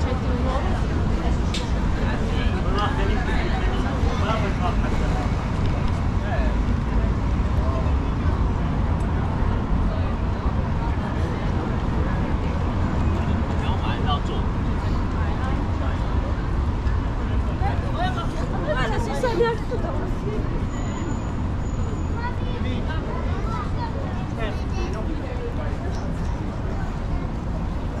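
Traffic rumbles steadily nearby, outdoors.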